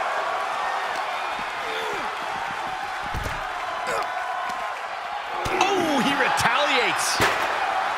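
Bodies slam hard onto the arena floor.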